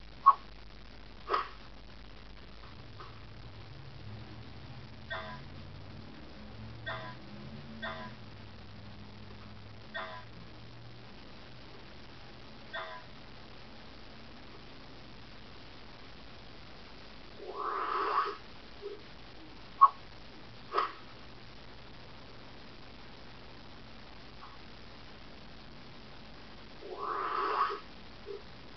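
Game sound effects chirp and bleep from a computer's speakers.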